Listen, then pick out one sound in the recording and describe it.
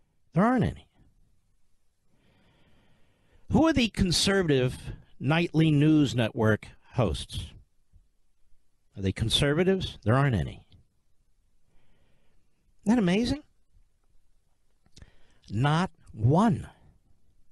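A middle-aged man speaks forcefully into a microphone, in short bursts with pauses.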